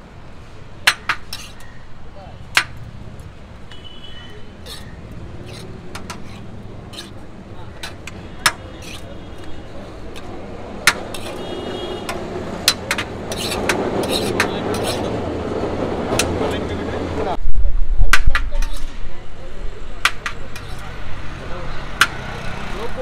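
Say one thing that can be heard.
Metal plates clink and clatter close by.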